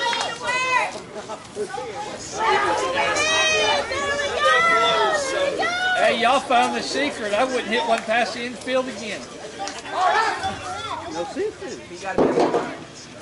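Several men call out and talk outdoors at a distance, with lively, cheerful voices.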